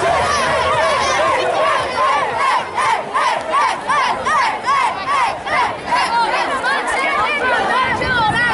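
Young children chant rhythmically together in a huddle.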